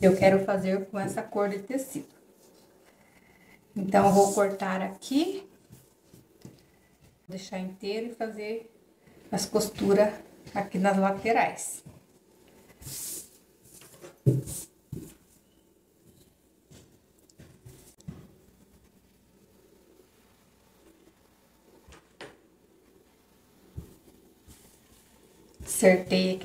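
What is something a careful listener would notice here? A woman speaks calmly close by, in short bursts with pauses.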